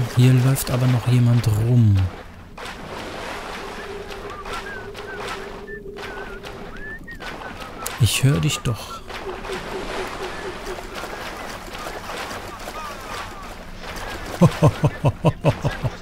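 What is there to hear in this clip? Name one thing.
Water splashes underfoot as someone wades through it.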